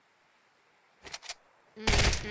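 A gun is swapped with a short metallic clatter.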